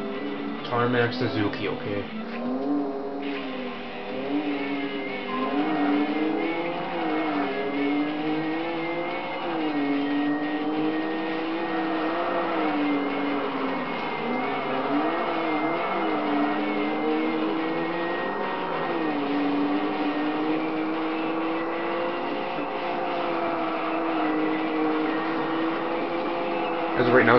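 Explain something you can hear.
A racing car engine revs high and shifts pitch as gears change.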